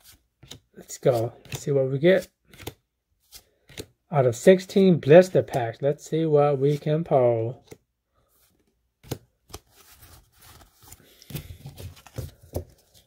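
Playing cards slide and flick against each other in a hand.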